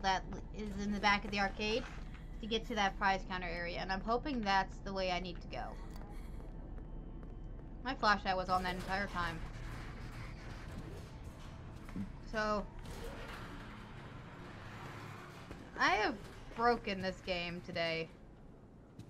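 A young woman talks into a microphone with animation, close by.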